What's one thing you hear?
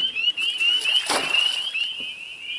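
A fish splashes into the water close by.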